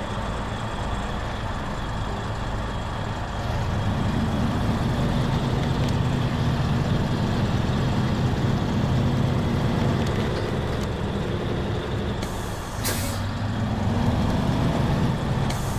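Tyres crunch through snow.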